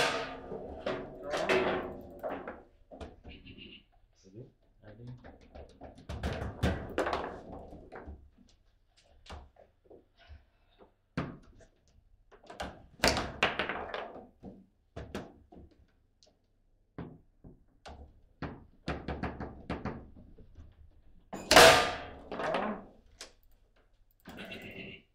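A foosball ball clacks sharply against plastic players and the table's walls.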